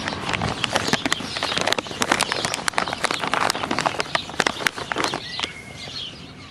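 A dog pants and snuffles close by.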